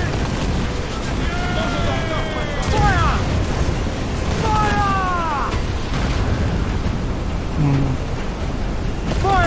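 Wind and rain roar steadily over rough sea.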